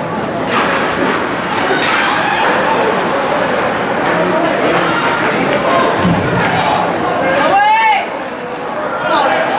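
Skates scrape across ice in an echoing rink.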